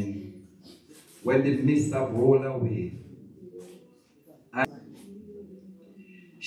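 A man speaks with feeling into a microphone, heard through loudspeakers in an echoing room.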